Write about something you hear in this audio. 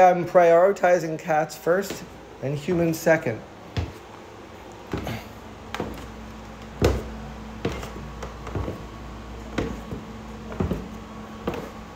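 Footsteps thud on wooden stairs going down.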